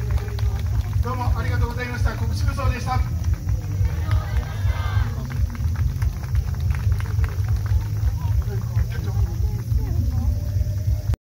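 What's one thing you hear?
Festival music with drum beats plays from loudspeakers at a distance.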